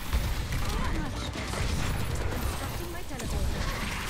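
Energy shots zap and clatter against a barrier.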